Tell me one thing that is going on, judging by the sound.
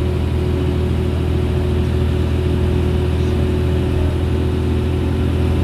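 Bus tyres hum on a paved road.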